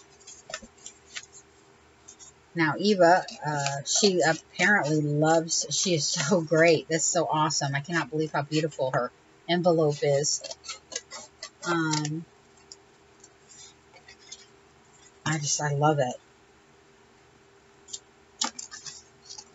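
Stiff paper pages rustle and flap as they are turned.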